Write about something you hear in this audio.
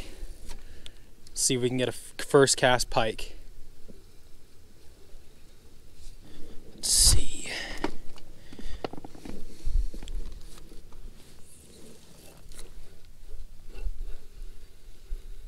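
A fishing reel whirs softly as its handle is cranked.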